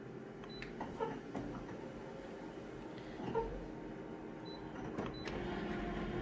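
A copier's mechanism clunks and clicks.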